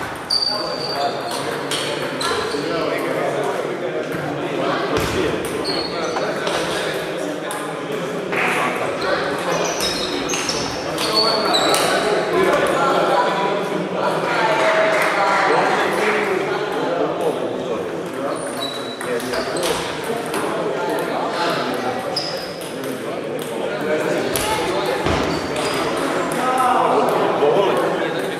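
Table tennis balls click on tables and paddles throughout a large echoing hall.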